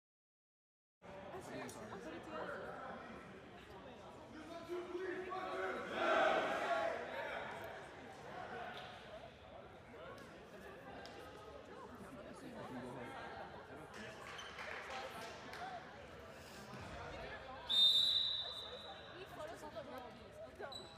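Players call out and chatter in a large echoing hall.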